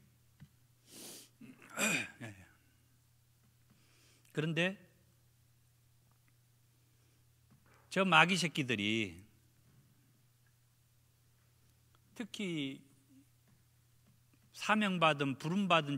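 A middle-aged man speaks slowly and earnestly into a microphone, with pauses between phrases.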